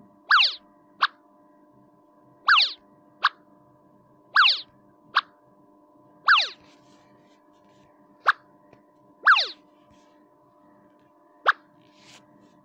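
A short sharp pop sounds after each placement.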